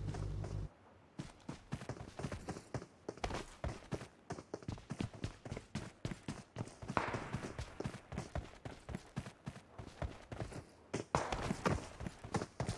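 Footsteps patter quickly over dirt and grass.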